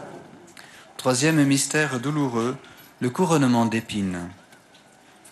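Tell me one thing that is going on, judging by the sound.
A man recites a prayer into a microphone.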